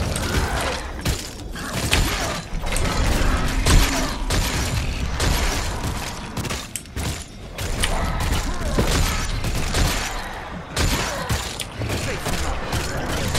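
Weapons and spells strike in a video game battle.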